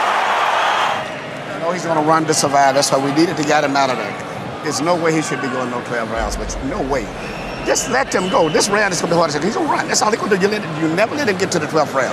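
Several men talk urgently close by.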